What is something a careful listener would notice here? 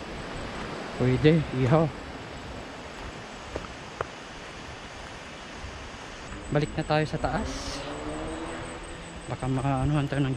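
A young man talks calmly and close up, in short bursts.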